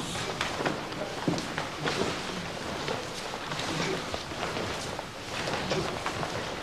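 Fists and kicks strike against bodies with dull thuds.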